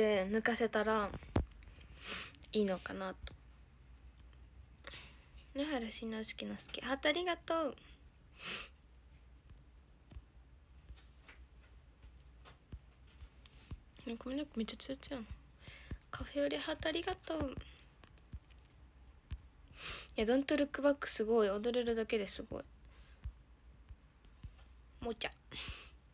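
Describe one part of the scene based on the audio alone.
A young woman talks softly and calmly, close to the microphone, with pauses.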